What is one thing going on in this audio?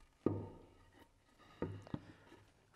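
A wooden board knocks against a table.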